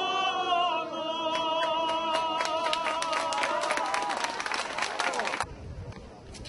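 A crowd of men and women shouts angrily close by.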